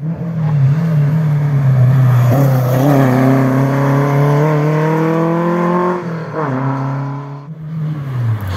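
A rally car engine roars loudly as the car accelerates away.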